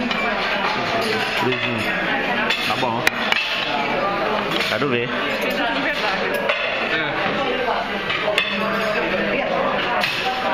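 Several people talk and chatter nearby.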